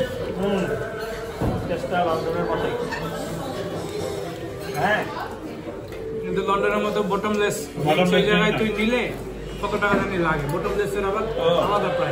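Cutlery scrapes and clinks on a plate.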